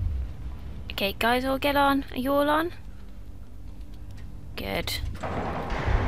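A young woman speaks with animation into a headset microphone.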